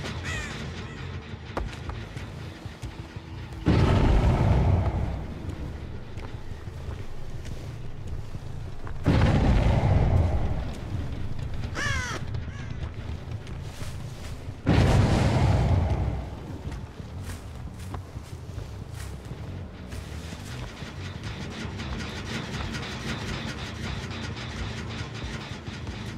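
Heavy footsteps tread through grass and over stone.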